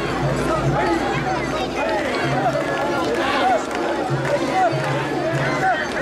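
A large crowd of men chants loudly in rhythm outdoors.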